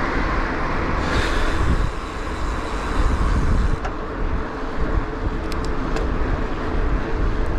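Wind rushes and buffets loudly past the rider.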